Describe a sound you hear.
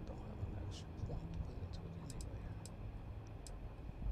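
A soft menu click sounds.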